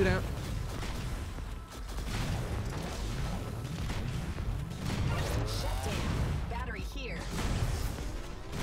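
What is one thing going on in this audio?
Video game laser shots and explosions crackle and boom.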